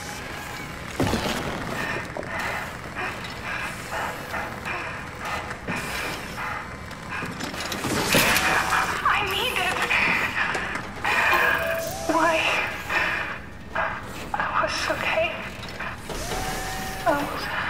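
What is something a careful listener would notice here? Metal clanks and scrapes.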